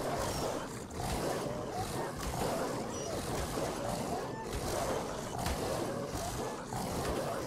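Rapid blows strike a large creature again and again.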